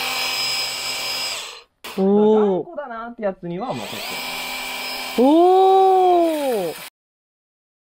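A handheld pressure washer motor whines steadily.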